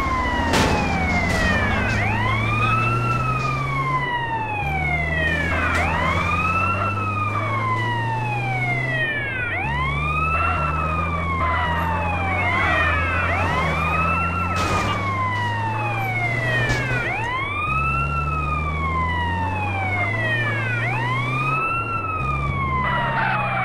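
An ambulance siren wails, rising and falling over and over.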